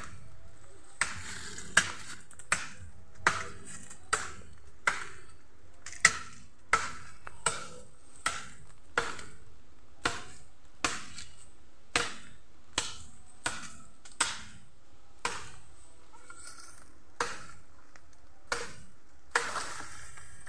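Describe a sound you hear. A blade chops into wood with sharp, regular blows.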